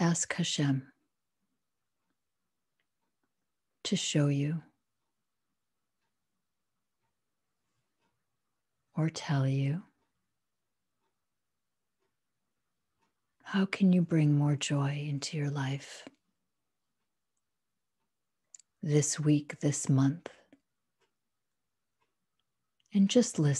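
A middle-aged woman speaks calmly in short bursts over an online call.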